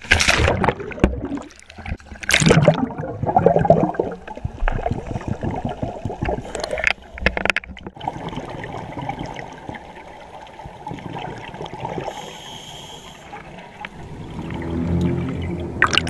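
Bubbles rush and gurgle underwater.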